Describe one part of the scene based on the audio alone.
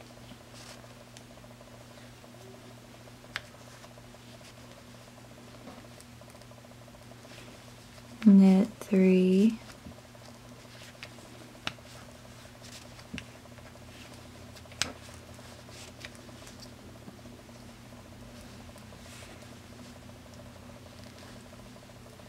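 Wooden knitting needles click together softly as stitches are worked.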